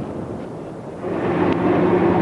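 A tram rumbles along its rails.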